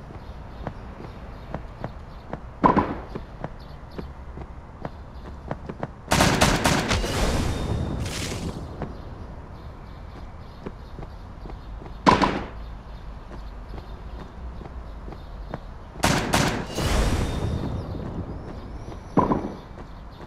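A paint gun fires in rapid bursts.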